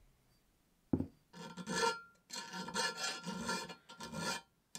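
A metal file rasps back and forth across metal in short strokes.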